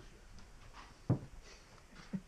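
A door knocks as it swings open.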